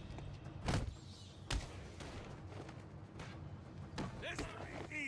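Heavy punches and thuds land in a fight.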